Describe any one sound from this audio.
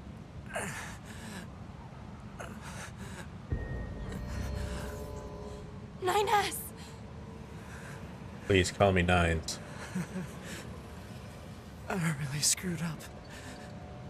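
A young man speaks weakly and strained, close by.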